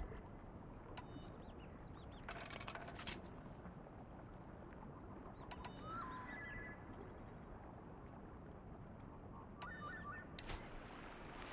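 Short electronic clicks sound as weapons are chosen.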